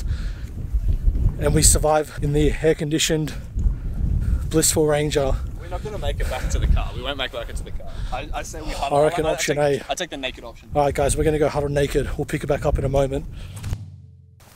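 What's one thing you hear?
A man talks with animation close by, outdoors in wind.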